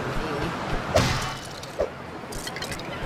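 A pickaxe digs into soil with a scraping thud.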